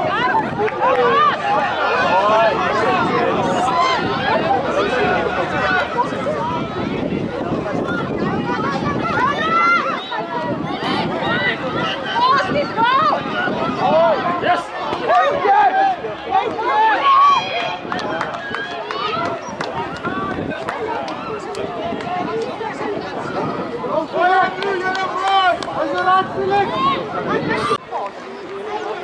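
Young children shout and call out excitedly.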